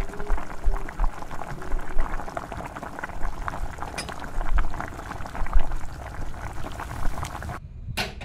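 Tea pours and splashes through a strainer into a cup.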